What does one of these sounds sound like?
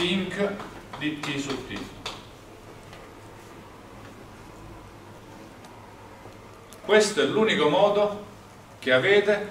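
A young man lectures aloud, in pauses.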